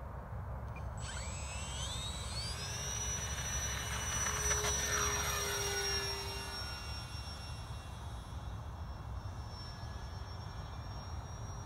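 A model airplane's electric motor whines, rising in pitch as the plane takes off and flies overhead.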